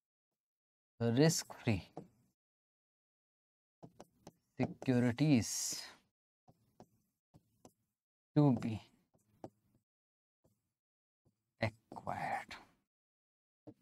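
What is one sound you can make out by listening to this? A man speaks calmly in short phrases, close by.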